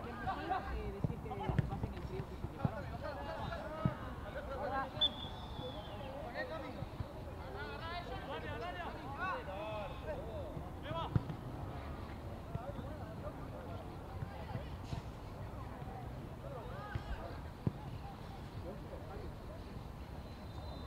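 Young men shout to each other outdoors during a football game.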